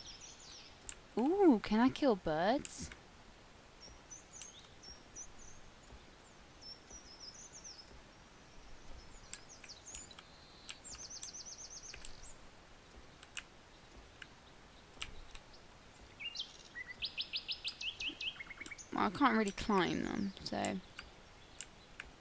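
An animal's paws patter softly on grass and dirt.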